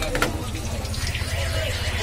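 Hot oil sizzles and bubbles in a pan.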